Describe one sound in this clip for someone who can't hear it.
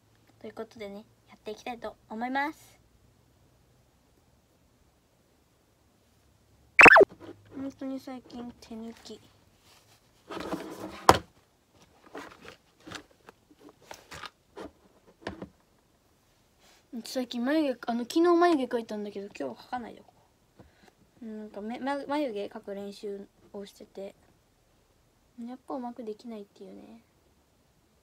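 A young girl talks close to the microphone in a bright, animated voice.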